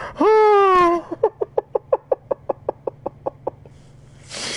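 A man laughs in quick bursts close to a microphone.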